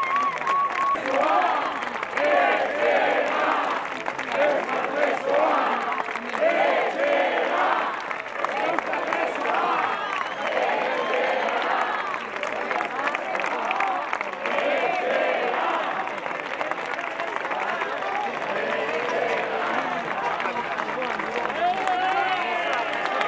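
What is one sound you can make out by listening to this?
Several men and women talk and call out at once, close by.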